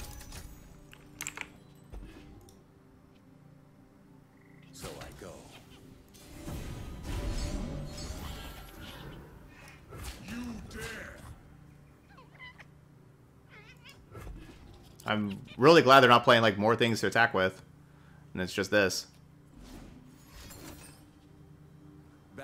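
Game sound effects chime and whoosh as cards are played.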